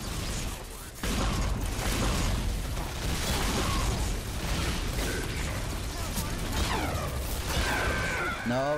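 Explosions boom and crackle in quick succession.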